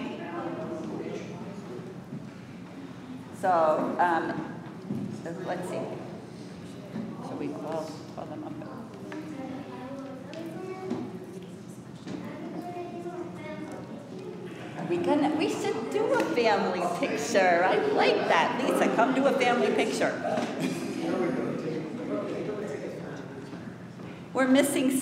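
A woman speaks calmly into a microphone in a large echoing hall.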